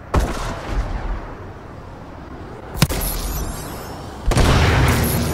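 A missile rushes loudly through the air.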